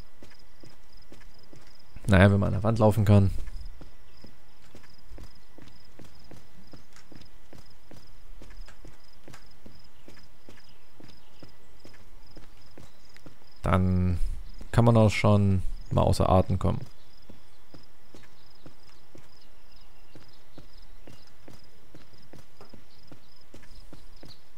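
Footsteps crunch over stony ground.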